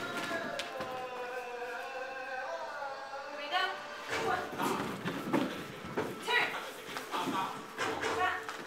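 Bare feet step and shuffle on a wooden floor.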